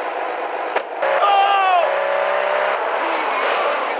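A car engine revs as a car speeds away.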